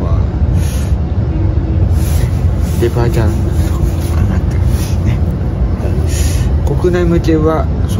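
A train rumbles steadily underneath.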